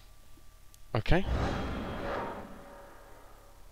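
A heavy game attack sound booms and rings out.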